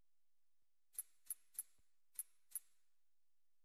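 Menu selection clicks tick softly.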